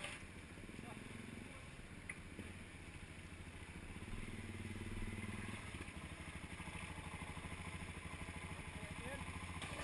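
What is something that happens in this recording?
A motorcycle engine idles close by with a steady low throb.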